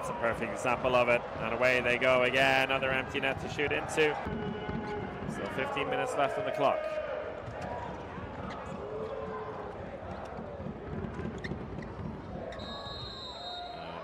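A large crowd cheers and chants in an echoing indoor arena.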